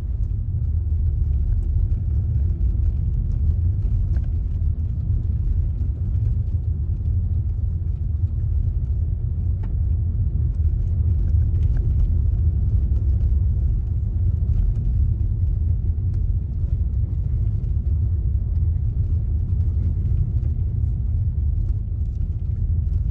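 Tyres rumble and crunch over a rough dirt road.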